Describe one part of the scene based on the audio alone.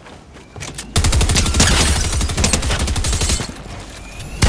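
Rapid gunfire rattles in a loud burst.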